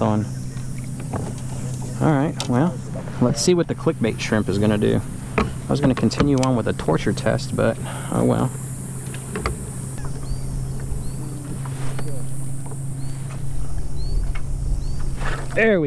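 Water laps softly against a kayak hull.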